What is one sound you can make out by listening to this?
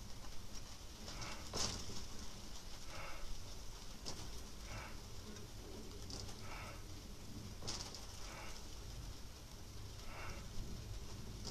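An adult breathes out hard in a slow, steady rhythm, close by.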